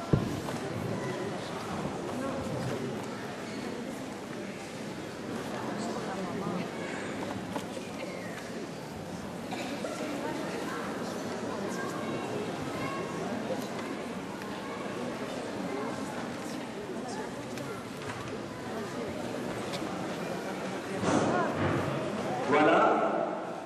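A crowd of people murmurs and talks all around, close by.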